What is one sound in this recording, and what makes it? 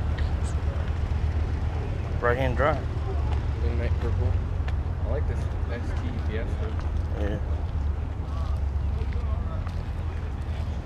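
Footsteps scuff on asphalt.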